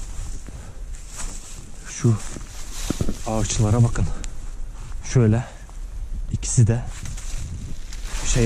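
Footsteps crunch through dry leaves and twigs outdoors.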